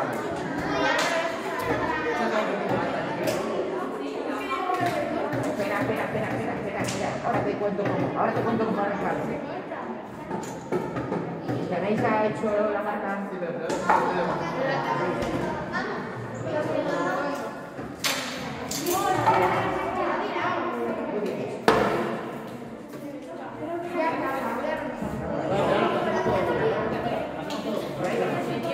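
Children and adults chatter throughout a room that echoes.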